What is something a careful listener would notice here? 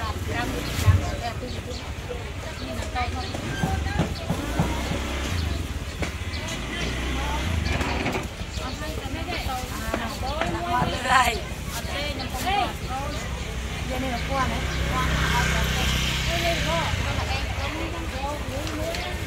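A middle-aged woman talks nearby with animation.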